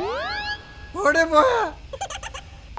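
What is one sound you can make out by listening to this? A man exclaims loudly nearby.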